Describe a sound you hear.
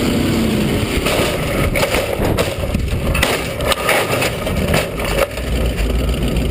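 Metal bangs and scrapes hard as a car crashes and rolls over.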